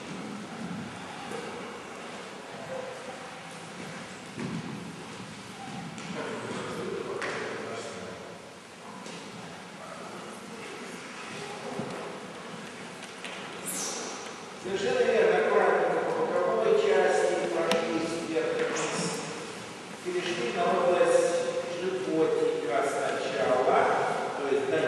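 Rubber balls roll and thump on a wooden floor in an echoing hall.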